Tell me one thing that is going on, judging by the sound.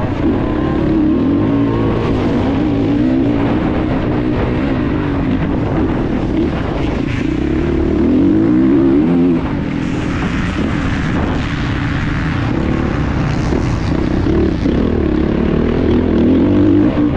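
Wind rushes loudly past the rider.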